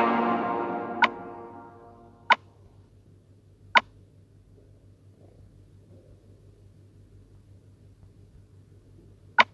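Short, sharp clicks sound as menu buttons are tapped.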